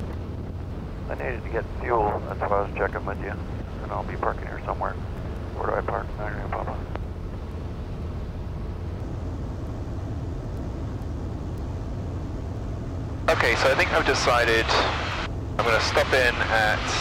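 A man speaks calmly through an aircraft intercom.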